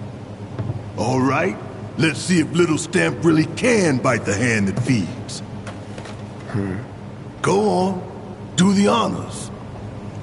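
A man speaks in a deep, gruff voice with animation, close by.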